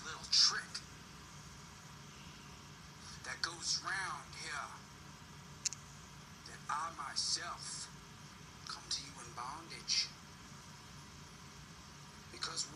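A young man speaks in short bursts, heard through a small television speaker.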